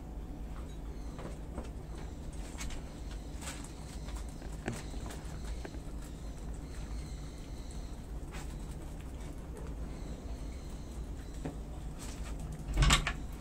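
Guinea pigs and a rabbit munch and crunch leafy greens up close.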